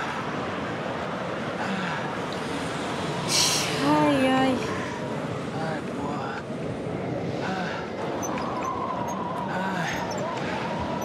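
Wind howls steadily in a snowstorm.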